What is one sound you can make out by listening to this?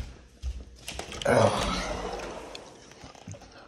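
A sliding door rolls open.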